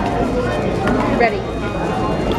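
Hands slap down on a plastic timer pad.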